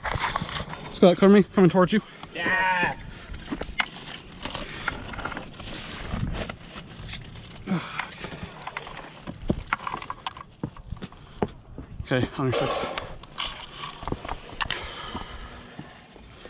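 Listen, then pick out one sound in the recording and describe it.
Footsteps crunch and scrape on rock and dry brush.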